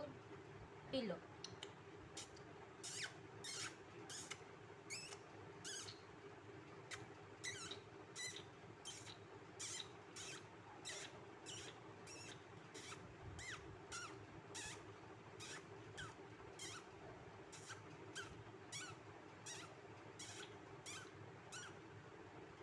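A small bird chirps repeatedly in short, high peeps close by.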